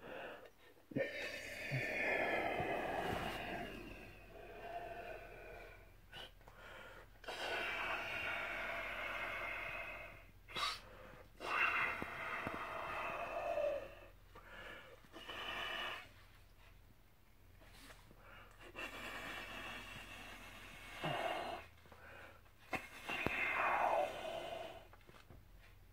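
Balloon rubber squeaks and whines as the balloon stretches.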